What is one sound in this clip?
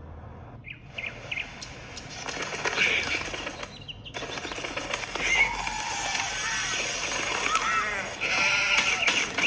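Upbeat game music plays from a small tablet speaker.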